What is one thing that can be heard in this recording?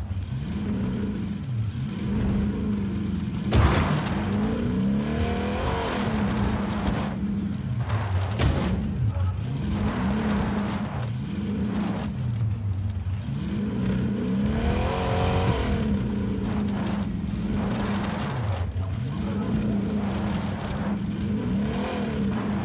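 A monster truck engine roars and revs up and down.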